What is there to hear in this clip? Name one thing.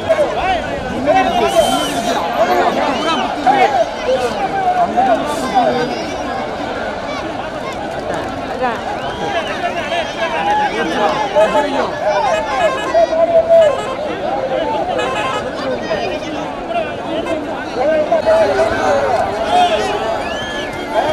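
Men whistle sharply from within a crowd.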